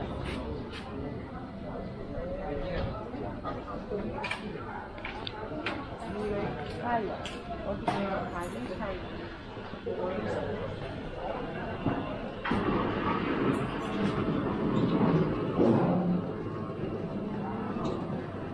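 Men and women talk in passing, close by outdoors.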